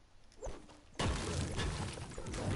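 A pickaxe strikes rock with heavy thuds.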